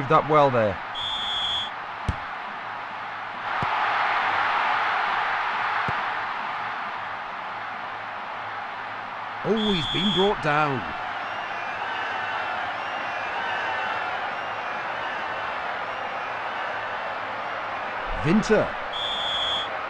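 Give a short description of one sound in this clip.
A referee's whistle blows short, sharp blasts.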